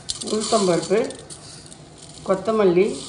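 Dry seeds patter into a metal pan.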